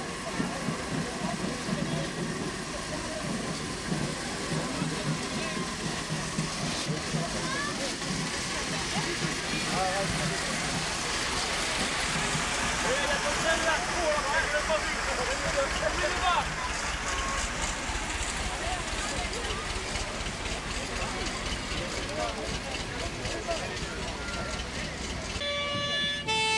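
An old truck engine idles with a low rumble.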